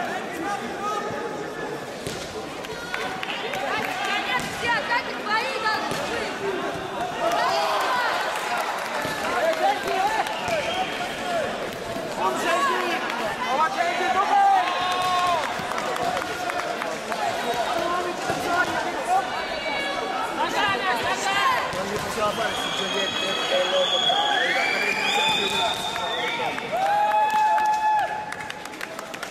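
A large crowd chatters and shouts throughout a big echoing hall.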